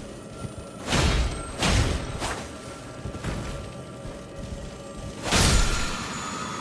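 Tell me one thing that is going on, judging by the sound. A sword slashes through the air.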